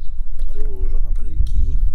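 A hand drops chopped vegetables into a metal pot.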